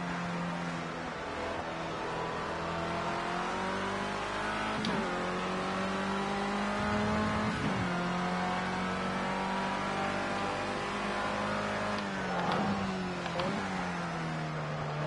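A racing car engine roars steadily, its pitch rising as it speeds up and dropping sharply with each gear change.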